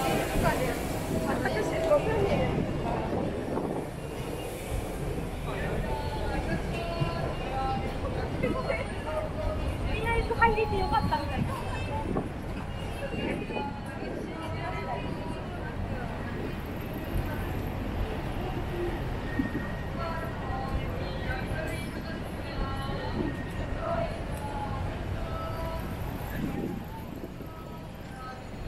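A busy street murmurs with the chatter of many passers-by nearby.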